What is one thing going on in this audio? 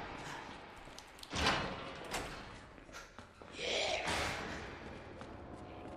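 Footsteps walk slowly on a hard floor.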